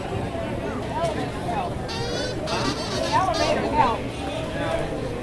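A man buzzes a tune on a kazoo.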